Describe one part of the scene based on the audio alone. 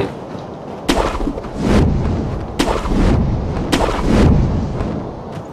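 Heavy thuds and scrapes sound as a climber grabs onto rock.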